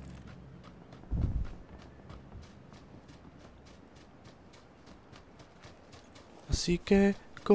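Footsteps run quickly over grass and ground.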